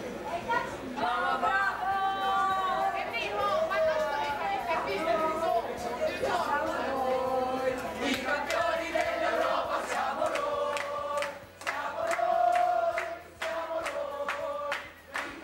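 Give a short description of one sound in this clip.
A group of young women and men sings together loudly.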